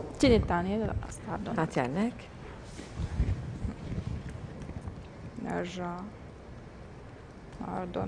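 Women talk with animation close to a microphone.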